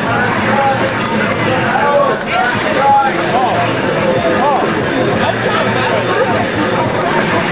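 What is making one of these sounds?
Video game fight effects and music play loudly from a television speaker.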